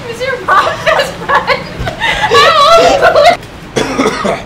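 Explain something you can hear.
A young woman laughs nearby.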